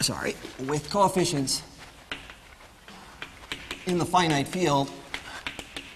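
A man speaks calmly, as if lecturing, in a room with some echo.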